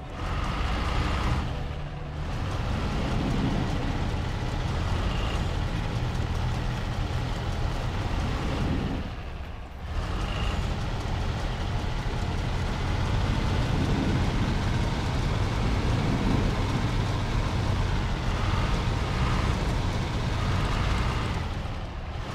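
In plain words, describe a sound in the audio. A heavy truck engine rumbles and strains at low speed.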